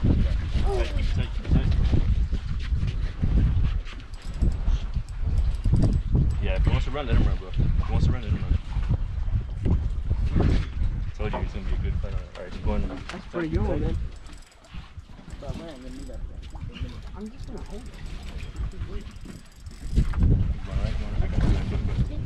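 A fishing reel clicks as it is wound.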